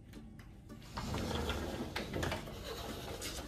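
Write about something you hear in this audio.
A sliding door rumbles open.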